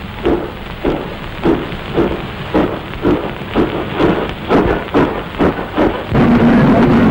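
A steam locomotive chugs in a steady, quickening rhythm.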